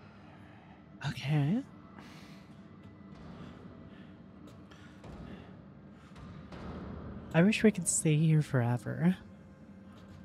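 A young woman's voice cries out in short bursts through a microphone.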